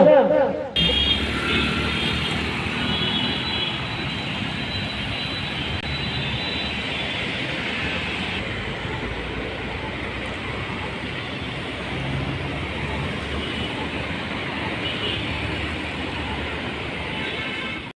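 Cars and motor scooters drive past on a road outdoors.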